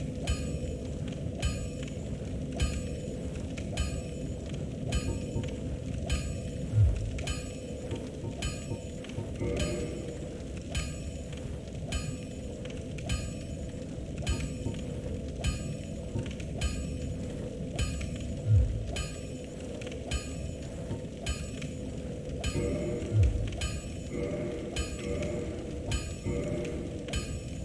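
A hammer rings on metal in steady, even blows.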